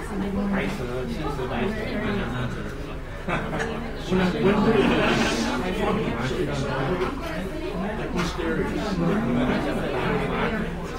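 Many men and women chatter at once in a large room.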